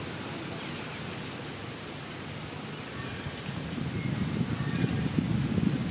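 Leaves rustle softly as a baby monkey clambers about on its mother's back.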